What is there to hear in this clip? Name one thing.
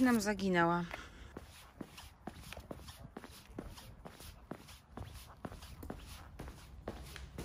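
Footsteps tap steadily on paving stones.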